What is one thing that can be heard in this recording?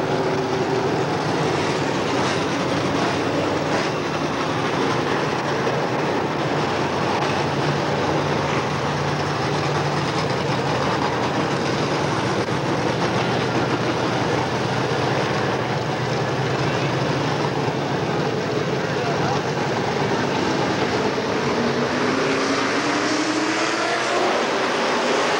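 Loud race car engines roar and rev as cars speed past outdoors.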